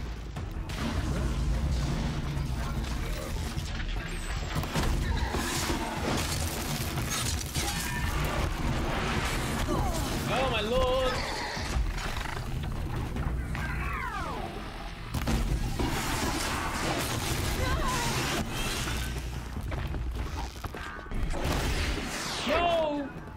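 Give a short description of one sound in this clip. Game machines clank, crackle and explode in a fight.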